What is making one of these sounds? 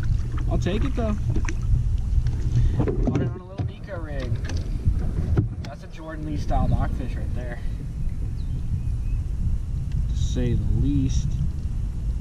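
A young man talks casually close by.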